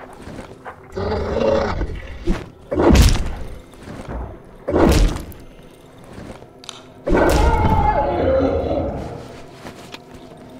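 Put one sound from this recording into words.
A creature strikes with loud, heavy thuds.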